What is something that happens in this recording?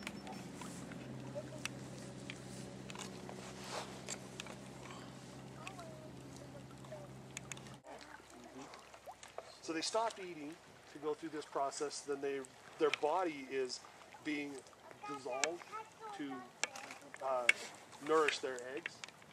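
Shallow stream water trickles gently over stones.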